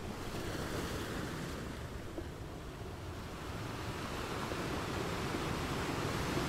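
Foamy water washes and hisses over the rocks.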